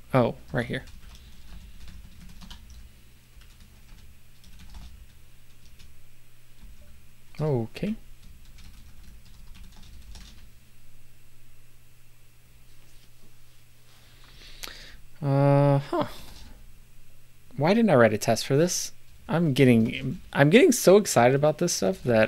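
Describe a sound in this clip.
A middle-aged man talks calmly into a close microphone.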